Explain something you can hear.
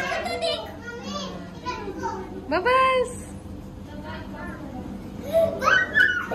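Young children talk and call out excitedly nearby.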